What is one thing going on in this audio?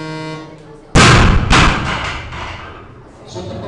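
A heavy barbell crashes down onto the floor with a loud bang and rattle.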